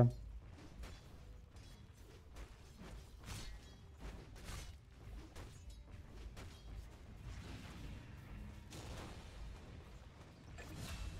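Spell effects whoosh and crackle in a fight.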